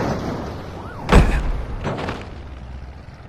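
A car crashes with a loud thud.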